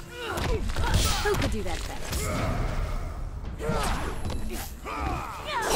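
Heavy punches land with sharp thuds.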